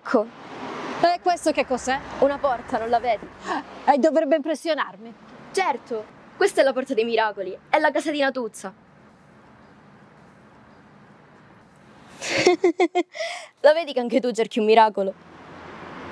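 A young woman speaks with animation up close.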